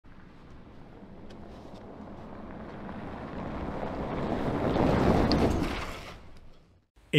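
A pickup truck drives fast on gravel, growing louder as it nears.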